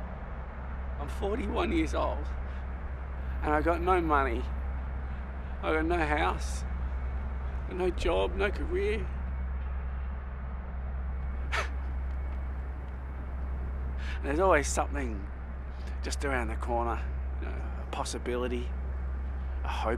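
A man speaks slowly and emotionally, close by, in short broken phrases.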